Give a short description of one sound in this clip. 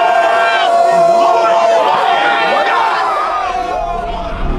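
A crowd of young men shouts and cheers excitedly.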